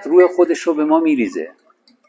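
Water pours into a glass.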